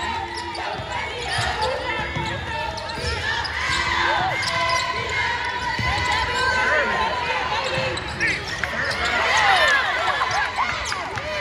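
Young women call out to each other across the court.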